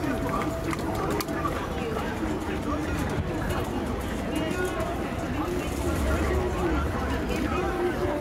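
A crowd of people chatters all around outdoors.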